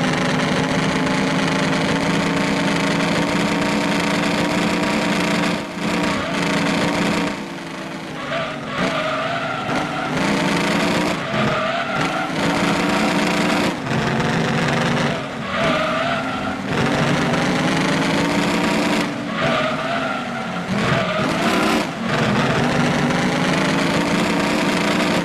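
A V8 race car engine roars at high revs.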